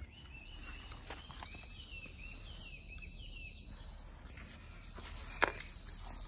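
A small dog sniffs closely at grass.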